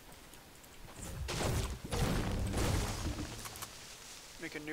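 A pickaxe strikes a tree with loud whooshing thuds.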